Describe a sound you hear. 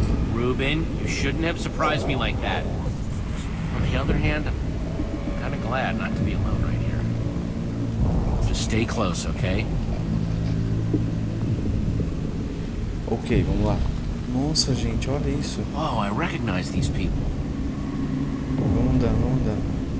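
A young man speaks with worry, close by.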